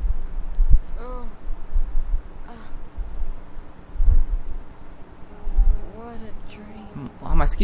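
A young boy speaks softly.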